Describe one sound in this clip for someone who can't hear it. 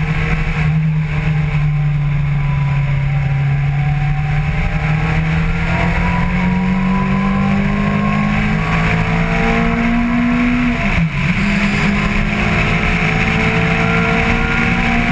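A motorcycle engine roars close by, its pitch rising steadily as it speeds up, with a brief dip as it shifts gear.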